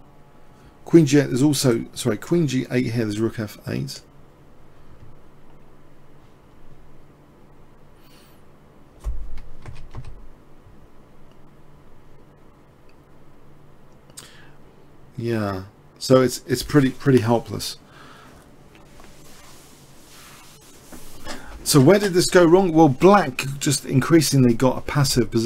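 A man speaks calmly through a microphone, with pauses.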